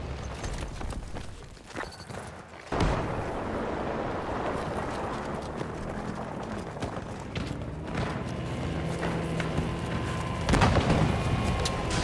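Footsteps run quickly over hard ground and gravel.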